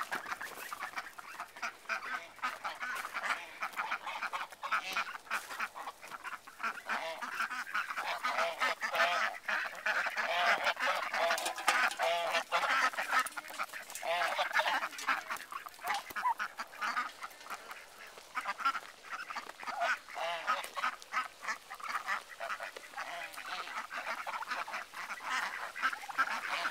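A flock of ducks quacks.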